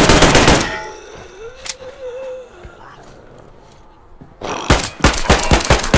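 A creature snarls and growls close by.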